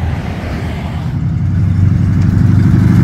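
A hot rod's engine rumbles as it approaches.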